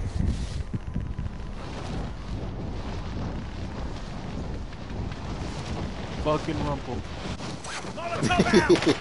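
Wind rushes steadily past during a freefall.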